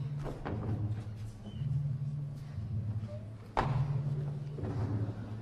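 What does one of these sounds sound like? Footsteps thud and shuffle on a wooden stage.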